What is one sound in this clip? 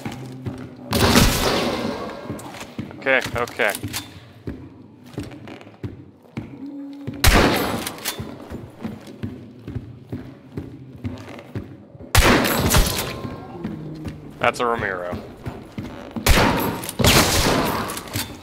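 Heavy gunshots boom and echo through a large space.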